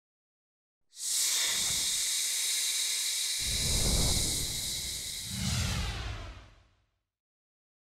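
A sword slides out of its sheath with a long ringing hiss.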